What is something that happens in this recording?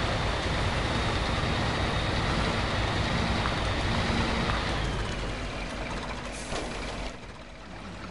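A heavy truck engine rumbles and strains.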